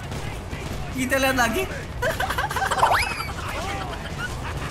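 A young boy laughs loudly into a microphone.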